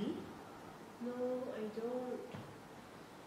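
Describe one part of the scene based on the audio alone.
A teenage girl speaks calmly.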